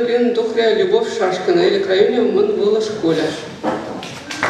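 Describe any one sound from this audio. A young man sings into a microphone.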